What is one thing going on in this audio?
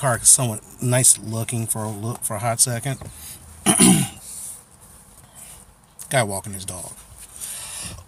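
A middle-aged man talks with animation close to a phone microphone.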